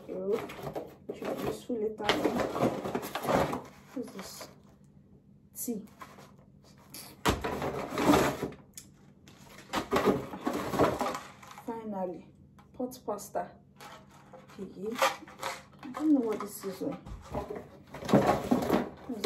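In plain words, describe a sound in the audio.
Paper packaging rustles and crinkles.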